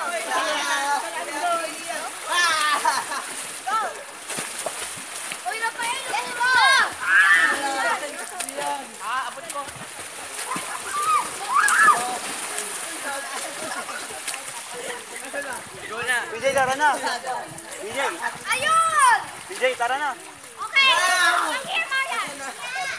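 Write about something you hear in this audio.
Children shout and squeal nearby, outdoors.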